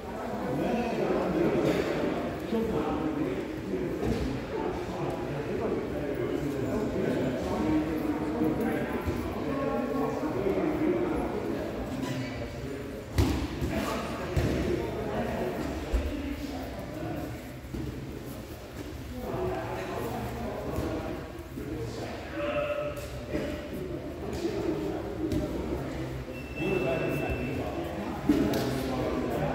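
Bodies thump and shuffle on a padded floor.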